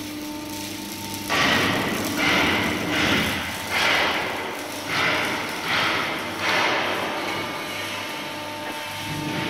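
A large hydraulic machine hums steadily.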